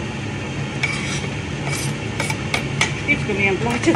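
Herbs are scraped off a board into a pot.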